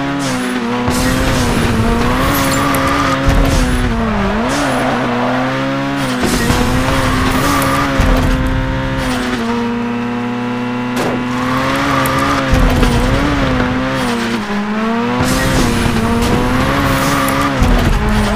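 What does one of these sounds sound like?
A car engine drones at high revs, its pitch wavering up and down.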